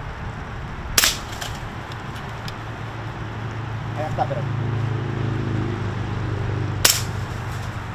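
A rifle shot cracks loudly outdoors.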